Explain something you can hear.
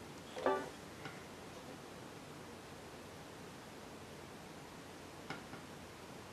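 A banjo bumps and taps as it is handled.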